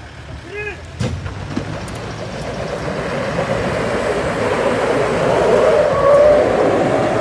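A vehicle engine revs hard as its tyres spin on dirt.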